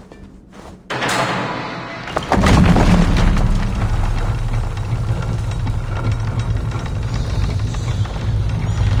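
A heavy iron gate grinds and rumbles loudly as it slowly rises.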